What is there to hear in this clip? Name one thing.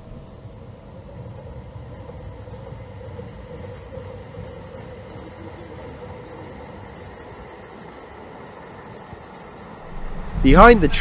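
A light rail train hums as it pulls away and fades into the distance.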